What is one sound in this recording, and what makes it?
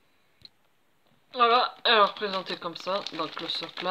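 A plastic bag crinkles as it is handled.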